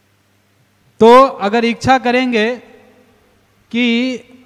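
A man chants melodiously into a microphone, heard through a loudspeaker.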